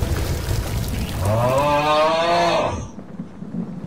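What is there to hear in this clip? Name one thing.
A young man shouts in fright into a close microphone.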